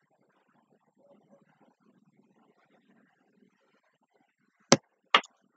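A young woman murmurs quietly close to a microphone.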